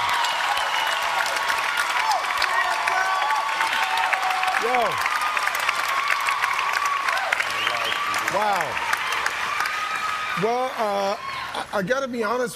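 A large crowd cheers and whistles loudly in a big hall.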